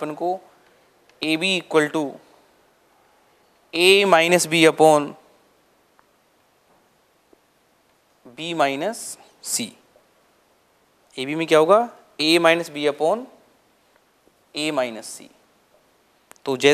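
A man explains calmly in short phrases, close to a microphone.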